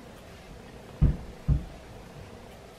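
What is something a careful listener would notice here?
Soft thumps come from hands handling a hairpiece.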